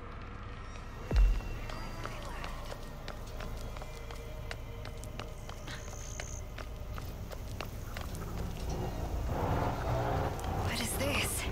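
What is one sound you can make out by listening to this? Footsteps crunch over dry grass and dirt.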